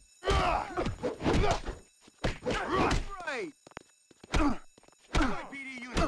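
Blows thud in a fistfight.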